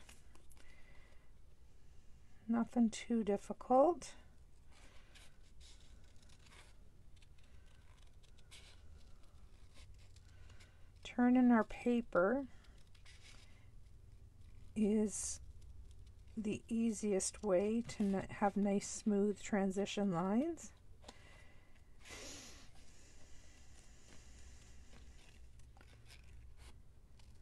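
Small scissors snip through paper.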